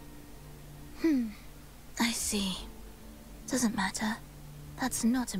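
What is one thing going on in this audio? A young woman speaks calmly and softly through a microphone.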